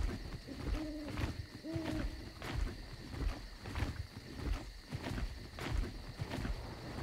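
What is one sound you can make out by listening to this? A pterosaur's leathery wings flap in rhythmic, heavy beats.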